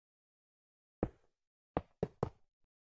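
A block breaks with short crunching knocks.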